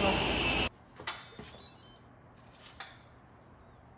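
A lid clinks against a metal pot.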